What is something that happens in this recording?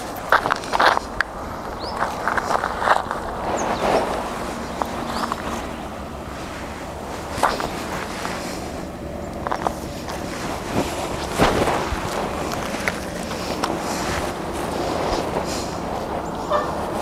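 Footsteps crunch on dry, gravelly ground close by.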